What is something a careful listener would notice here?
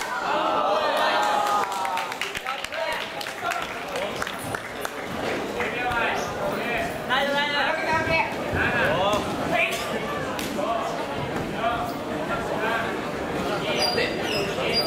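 A large crowd chatters and shouts in an echoing hall.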